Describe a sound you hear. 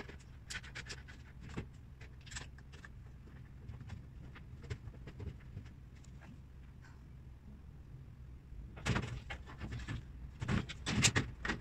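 Loose cabinet parts knock and clink on a wooden floor.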